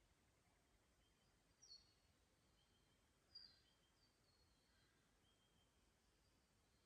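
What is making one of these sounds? Water trickles softly over stones.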